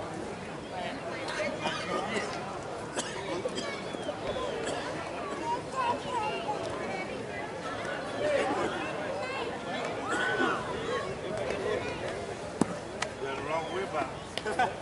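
Men talk and call out across an open outdoor field.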